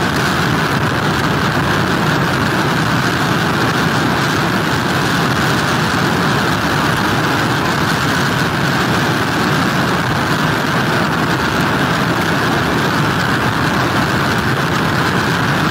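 Heavy surf crashes and churns against pier pilings.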